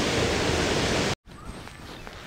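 A river rushes loudly over a weir.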